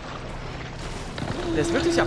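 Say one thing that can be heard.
Water splashes around wading legs.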